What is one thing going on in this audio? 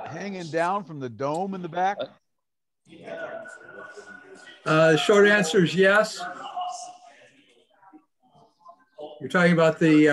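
Elderly men talk calmly in turn over an online call.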